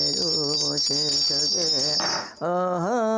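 A handbell jingles and rings.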